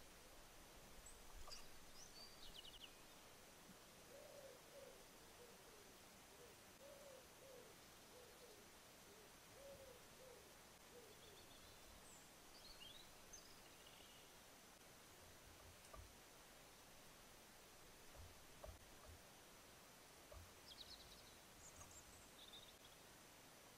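Birds chirp briefly outdoors.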